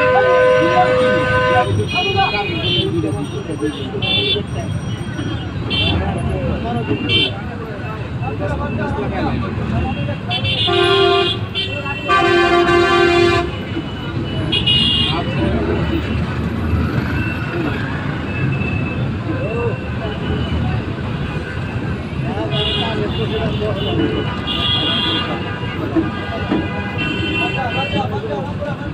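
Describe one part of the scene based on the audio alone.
Vehicle horns honk repeatedly in short and long blasts.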